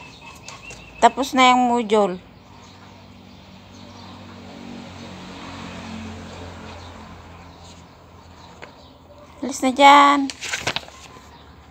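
A cat meows loudly close by.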